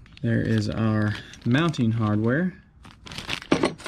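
A plastic bag crinkles in someone's hands.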